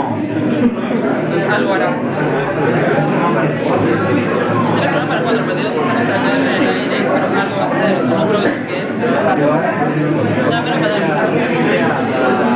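Many people chatter in the background of a crowded room.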